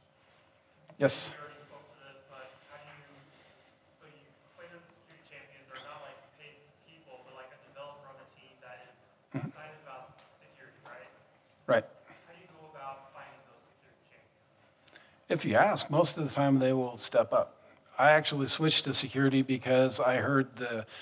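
A man speaks calmly through a microphone, at times louder and more animated.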